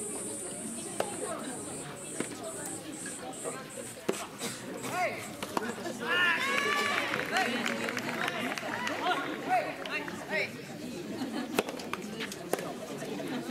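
Tennis balls are struck with rackets in sharp pops.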